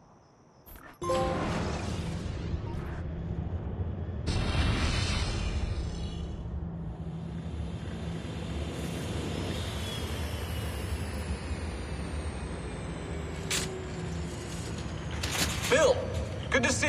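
A low electronic drone hums steadily.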